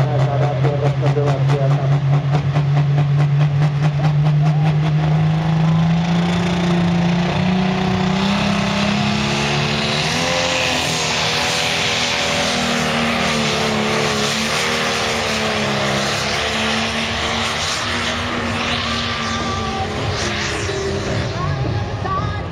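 A loud tractor engine roars and rises in pitch as it pulls a heavy sled.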